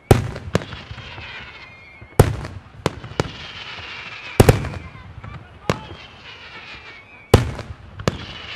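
Fireworks crackle and whistle after each burst.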